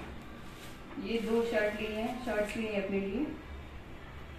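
A young woman speaks calmly close by.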